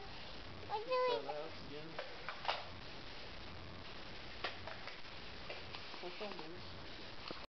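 A toddler babbles and coos close by.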